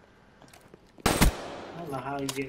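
A rifle fires a single loud shot with a short echo.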